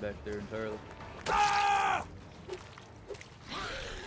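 A heavy blow thuds into a body.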